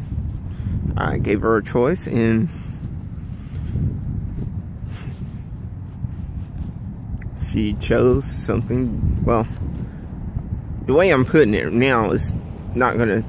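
A young man speaks close to the microphone, in short casual bursts.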